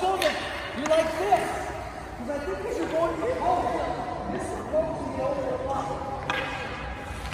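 A hockey puck cracks sharply off a stick.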